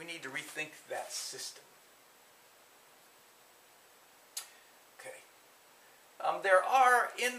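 An older man lectures calmly through a microphone, with pauses.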